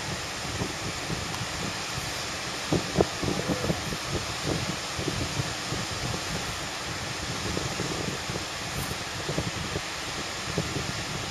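Waves break and wash steadily onto a beach.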